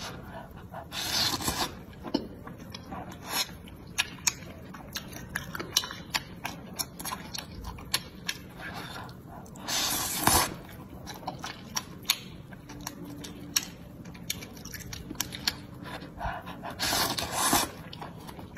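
A young woman slurps noodles loudly, close up.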